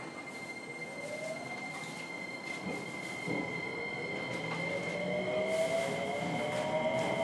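An electric train's motor whines, rising steadily in pitch as the train speeds up.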